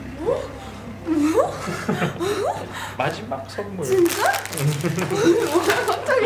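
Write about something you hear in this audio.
A young woman talks and laughs excitedly close by.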